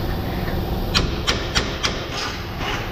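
Metal tools knock and clank against car parts.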